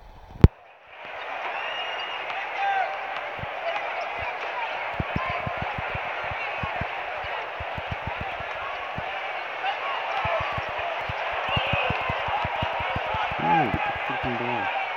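A basketball bounces steadily on a hardwood court.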